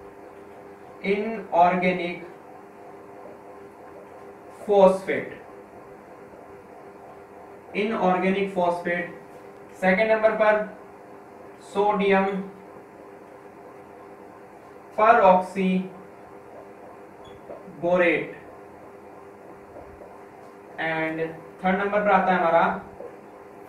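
A man speaks calmly in short phrases, close by, with pauses between them.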